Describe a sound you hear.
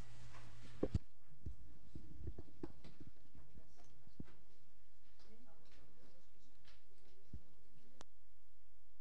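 Papers rustle and shuffle.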